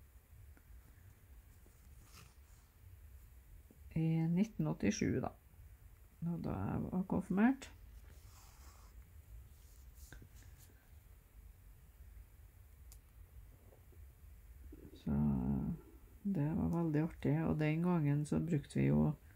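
Thread rasps softly as it is pulled through cloth.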